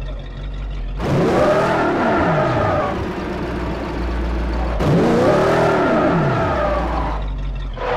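Tyres screech on asphalt while spinning.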